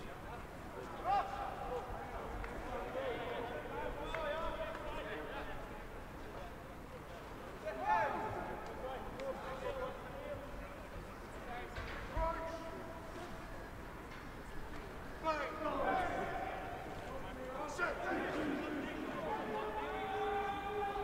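Young men shout calls to each other across an open field.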